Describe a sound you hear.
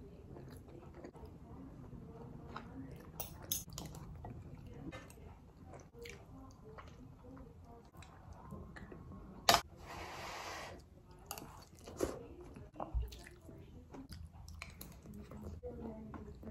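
A woman chews food with her mouth open, close up.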